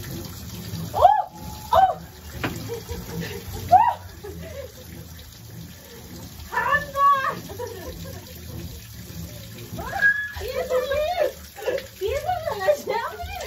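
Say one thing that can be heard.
A woman speaks nearby in short bursts.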